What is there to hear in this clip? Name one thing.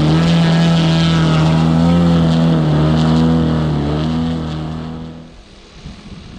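A model plane's electric motor whines loudly close by, then fades as the plane flies away.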